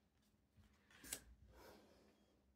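A card slides across a wooden table.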